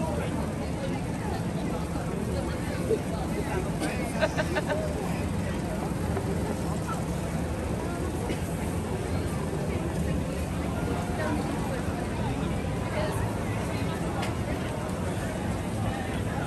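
A crowd murmurs and chatters outdoors.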